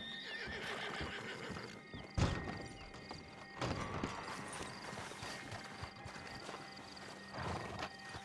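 Footsteps crunch on dirt outdoors.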